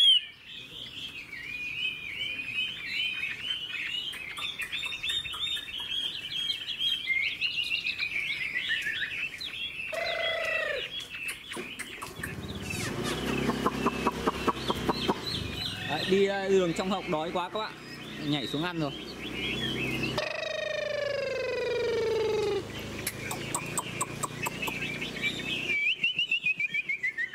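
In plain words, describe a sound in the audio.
A songbird sings loud, varied, whistling phrases close by.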